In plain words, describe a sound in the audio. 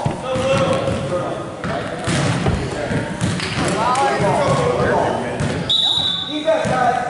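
Spectators chatter and call out nearby in a large echoing gym.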